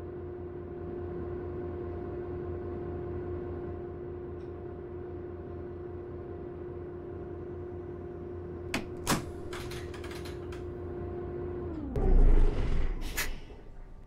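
A diesel city bus engine idles, then winds down and stops.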